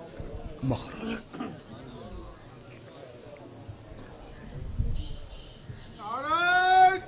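A man speaks passionately into a microphone over loudspeakers.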